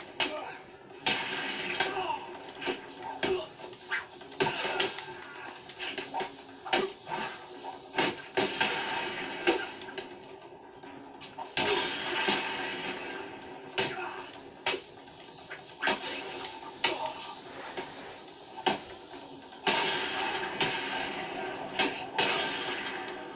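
Punches and kicks thud sharply in a fast video game brawl, heard through a television speaker.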